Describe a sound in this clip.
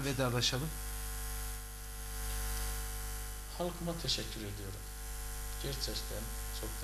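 A man speaks calmly through a microphone, in short bursts.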